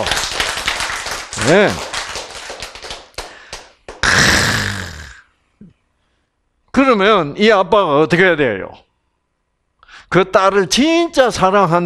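An elderly man speaks with animation into a microphone, pausing between phrases.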